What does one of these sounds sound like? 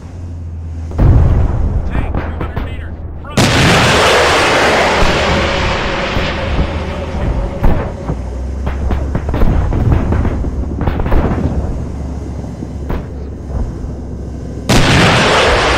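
Guns fire with sharp, loud bursts.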